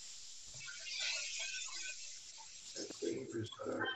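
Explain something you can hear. A spoon stirs in a pot.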